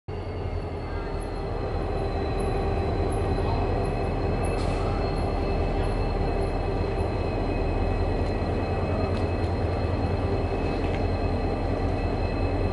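A train's wheels rumble and clatter on the rails.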